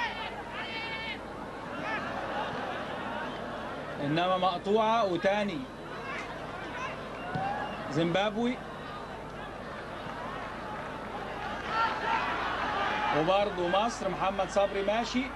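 A large stadium crowd roars and murmurs steadily in the distance.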